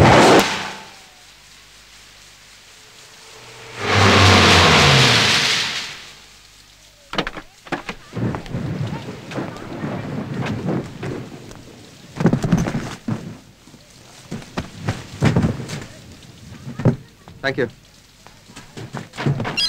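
Heavy rain pours down steadily.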